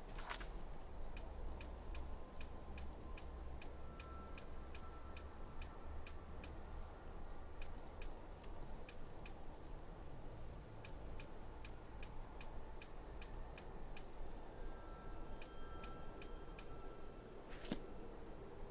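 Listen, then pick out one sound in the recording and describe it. Soft menu clicks tick quickly, one after another.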